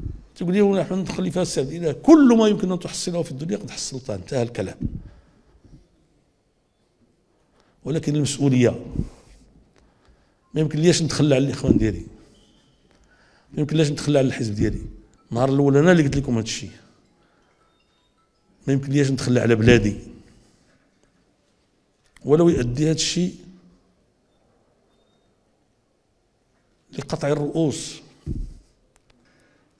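An older man speaks forcefully into a microphone, in bursts with pauses.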